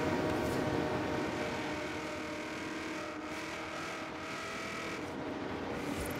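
Tyres screech through a turn.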